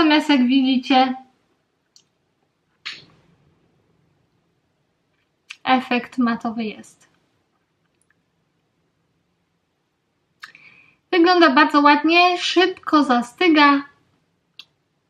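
A young woman talks calmly and close to a microphone, with pauses.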